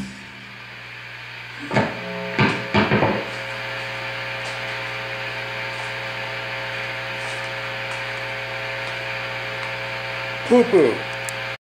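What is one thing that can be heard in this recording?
An amplifier hums steadily.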